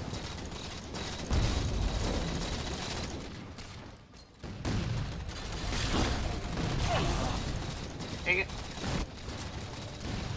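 Gunfire rattles from a game.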